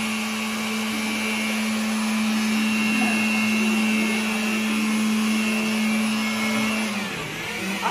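An electric blower whirs with a steady hum, then stops.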